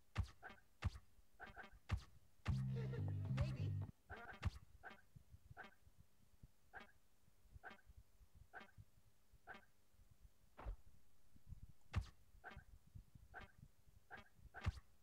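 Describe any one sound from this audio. Menu selection blips tick in quick succession.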